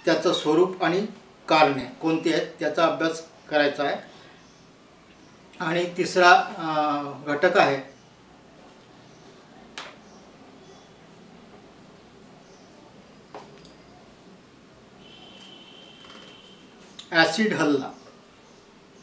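A middle-aged man speaks close by, calmly and with some emotion, in short bursts.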